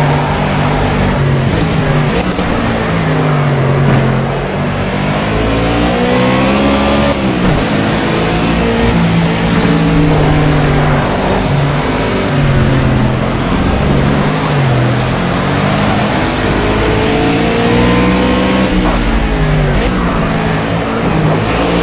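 A race car engine roars loudly, revving up and down through gear changes.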